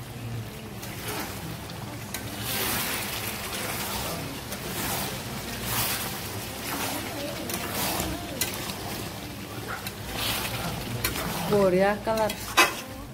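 A spatula scrapes and stirs food in a metal pan.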